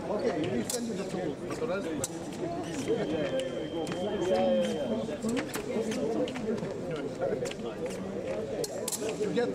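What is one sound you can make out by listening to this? Fencers' feet tap and stamp quickly on the floor.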